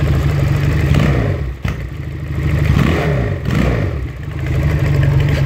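A motorcycle engine revs up and down as the throttle is twisted.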